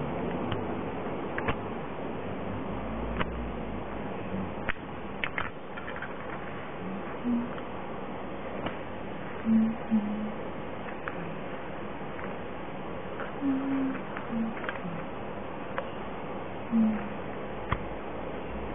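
Small metal parts click and clink together as they are handled.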